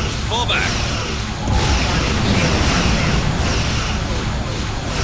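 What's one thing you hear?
Energy blasts rumble with deep booms.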